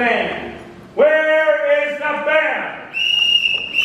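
A man sings loudly in a large hall.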